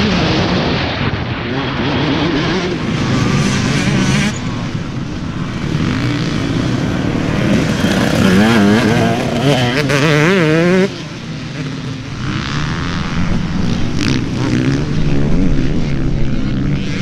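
Dirt bike engines roar and rev loudly, rising and falling in pitch.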